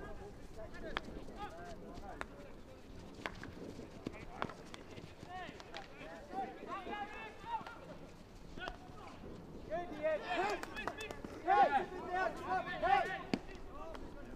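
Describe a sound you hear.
Hockey sticks crack against the ball.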